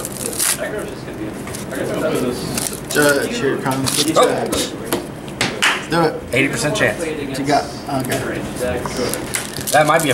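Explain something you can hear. Foil card packs crinkle and tear open.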